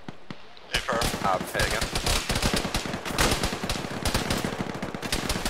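A rifle fires rapid shots close by.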